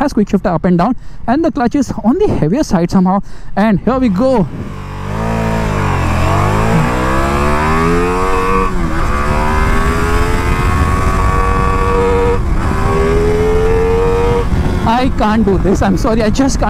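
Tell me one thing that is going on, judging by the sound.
A motorcycle engine revs sharply in quick bursts, close by.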